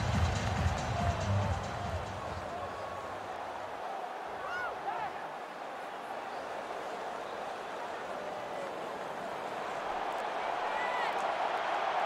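A large stadium crowd murmurs and cheers steadily.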